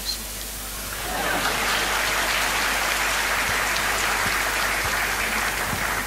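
A large audience laughs and applauds.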